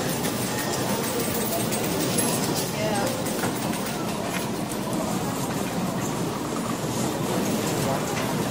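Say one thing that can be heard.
A crowd murmurs and chatters throughout a large room.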